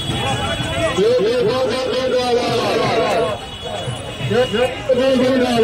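A man speaks loudly nearby with animation.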